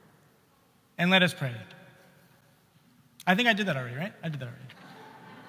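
A man chants in a sung voice in a large echoing hall.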